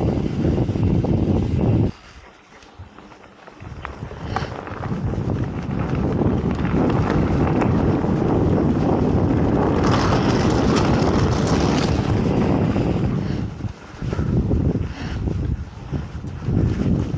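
Wind rushes past a moving cyclist.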